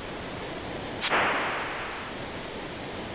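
A soft electronic whoosh sounds once and fades.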